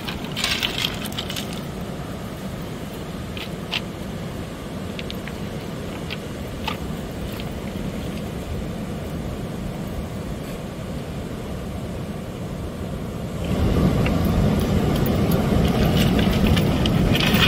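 Pebbles crunch under a dog's paws.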